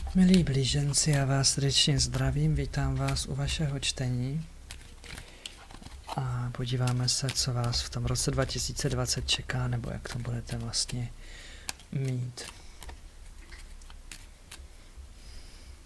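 Playing cards riffle and slide softly as they are shuffled by hand.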